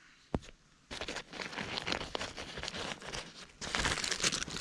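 Stiff fabric rustles and crinkles under a hand.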